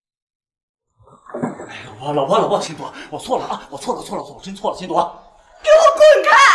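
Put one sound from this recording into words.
A young man pleads with animation, close by.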